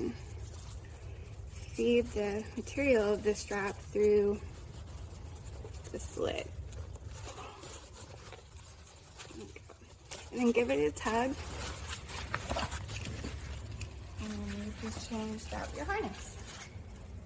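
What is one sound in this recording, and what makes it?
Nylon harness straps rustle against fabric.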